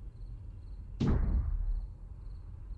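A rubber stamp thumps down hard onto paper.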